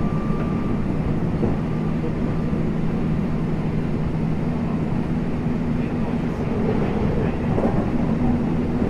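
An electric train hums while standing at a platform.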